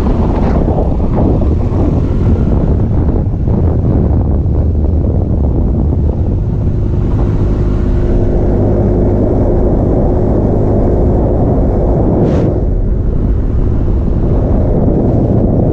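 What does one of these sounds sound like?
A vehicle's engine hums steadily as it drives along a winding road.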